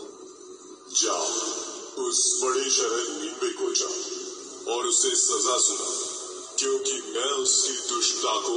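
A man speaks through a small, tinny laptop speaker.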